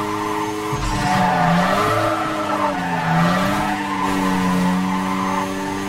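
Tyres screech as a car slides through corners.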